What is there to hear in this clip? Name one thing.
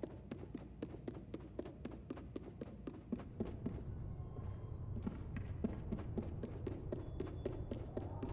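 Small footsteps patter quickly across wooden floorboards.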